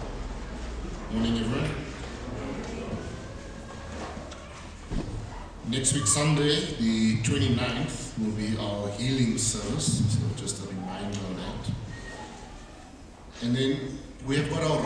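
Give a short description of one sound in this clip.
A man speaks calmly through a microphone, echoing in a large hall.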